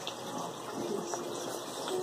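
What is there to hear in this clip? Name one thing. A plastic container rustles as fingers pick out food.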